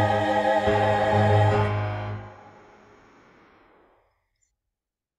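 A hymn recording plays and slowly fades out.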